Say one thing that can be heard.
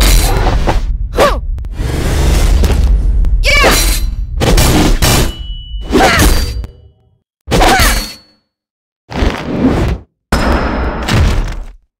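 Fighters' blows land with heavy thuds and swishes.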